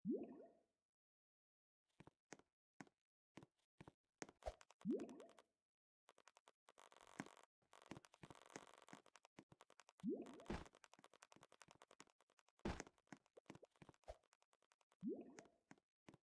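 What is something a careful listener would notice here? Video game sound effects pop and chirp repeatedly.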